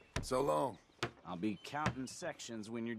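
A hammer knocks against a wooden post.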